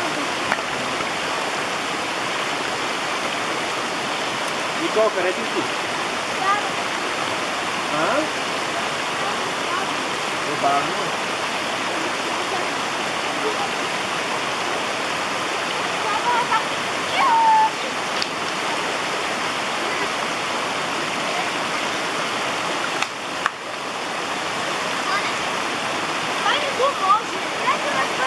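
A shallow stream babbles steadily over stones outdoors.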